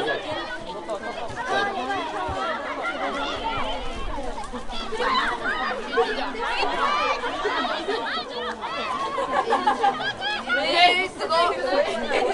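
Young women shout and call out to each other on an open field.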